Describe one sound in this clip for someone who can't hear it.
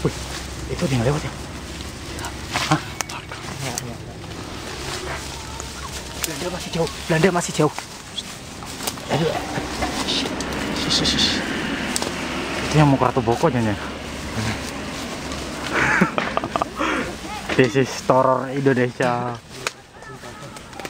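Leaves and twigs rustle and snap as people push through undergrowth.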